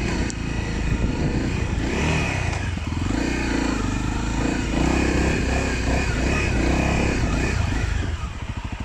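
A motorcycle engine revs loudly up close.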